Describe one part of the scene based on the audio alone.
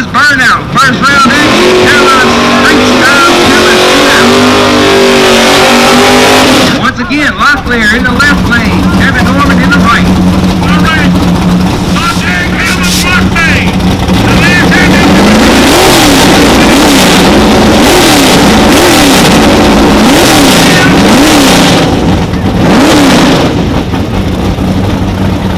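A race car engine roars loudly and steadily up close.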